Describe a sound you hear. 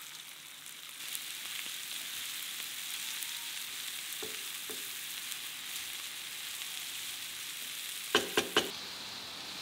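Chopped onions and cabbage sizzle in a frying pan.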